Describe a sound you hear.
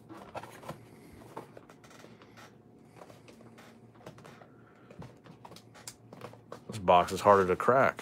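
A cardboard lid scrapes as it slides open.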